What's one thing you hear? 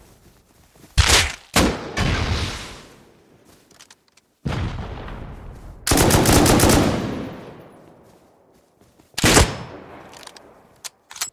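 Rifle shots crack loudly and echo away.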